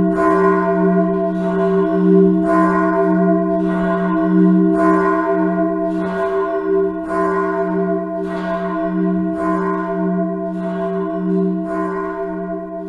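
A large church bell tolls steadily, each stroke ringing out and humming on.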